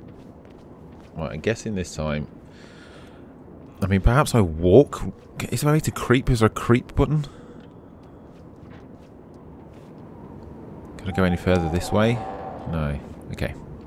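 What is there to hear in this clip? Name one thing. Footsteps tread on stone pavement.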